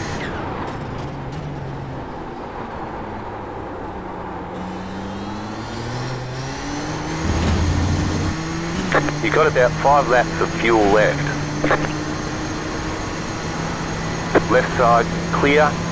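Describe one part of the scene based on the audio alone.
A race car engine drones and changes pitch as the car speeds up and slows down.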